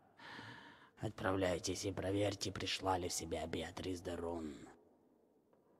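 An elderly man speaks slowly and gravely.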